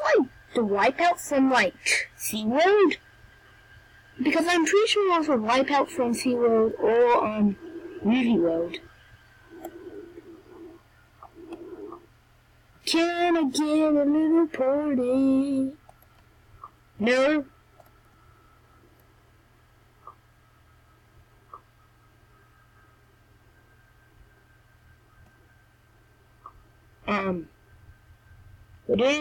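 A boy talks with animation, close to a microphone.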